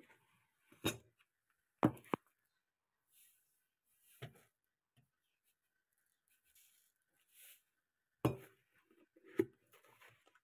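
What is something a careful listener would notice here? A plastic container knocks against a plastic cup.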